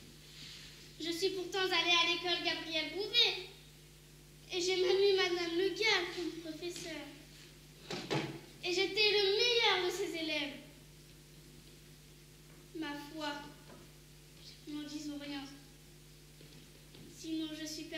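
A young actor speaks loudly and with animation, heard from a distance in a large room.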